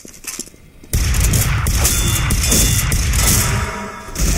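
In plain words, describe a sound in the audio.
A gun fires in rapid loud blasts.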